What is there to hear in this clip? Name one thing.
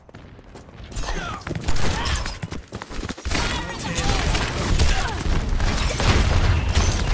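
Game gunfire rattles in quick bursts.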